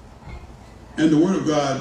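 A man speaks loudly through a microphone in an echoing hall.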